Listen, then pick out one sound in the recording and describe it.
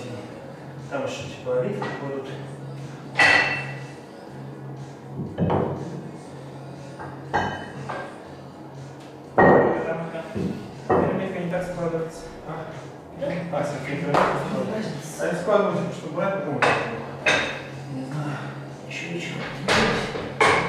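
Metal weight plates clank and knock.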